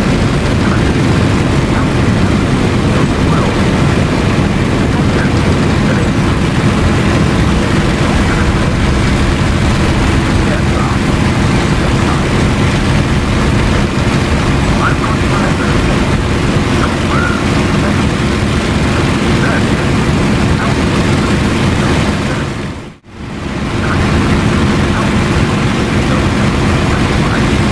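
A propeller plane's engine drones loudly and steadily.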